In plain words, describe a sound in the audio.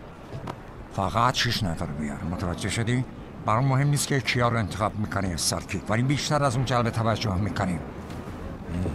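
A man speaks intently, close by.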